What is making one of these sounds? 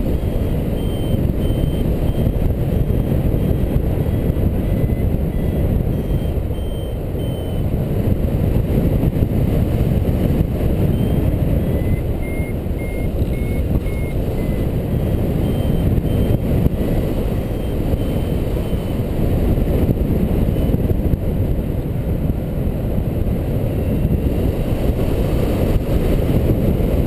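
Strong wind rushes and buffets steadily past a microphone high in the open air.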